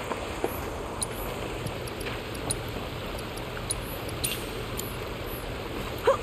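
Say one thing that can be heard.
Short menu blips and clicks sound in quick succession.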